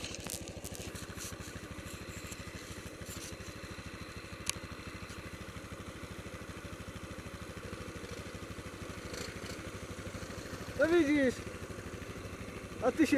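A single-cylinder four-stroke quad bike engine chugs under load, climbing through snow.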